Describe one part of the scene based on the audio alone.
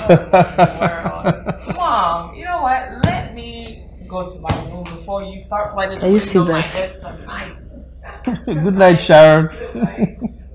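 A young woman speaks with irritation nearby.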